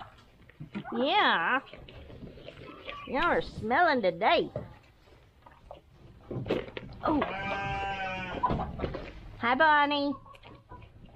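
Goats bleat loudly close by.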